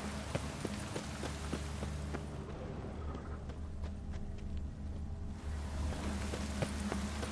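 Footsteps crunch over grass and soft ground.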